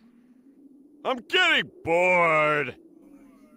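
A man speaks in a gruff, mocking voice.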